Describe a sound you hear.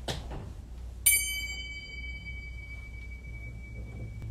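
A cymbal is struck hard and rings on.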